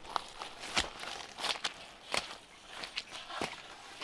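Footsteps crunch on leaves and twigs.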